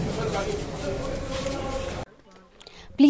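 A crowd of people murmurs and talks.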